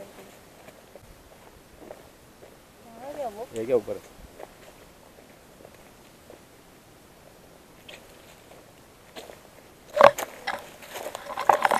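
Footsteps crunch on a dry dirt trail.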